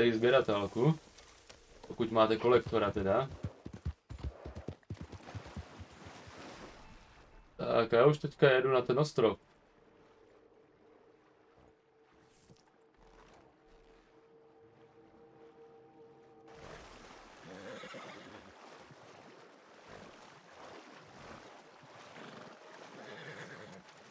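A horse gallops, its hooves thudding on soft ground.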